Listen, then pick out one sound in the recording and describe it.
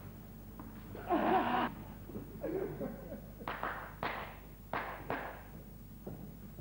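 A man cries out loudly in short bursts, heard from a distance in a large hall.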